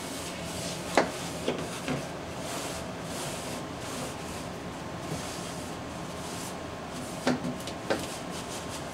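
Plastic knocks and clatters sharply a few times.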